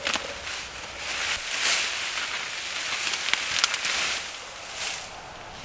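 Tall reeds rustle and swish as a man pushes through them.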